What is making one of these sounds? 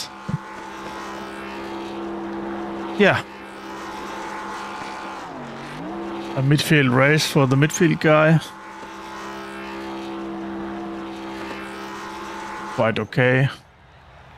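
A race car engine drones steadily as the car spins and slides.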